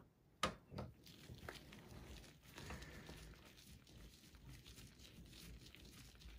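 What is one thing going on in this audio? Gloved hands rustle against metal and plastic.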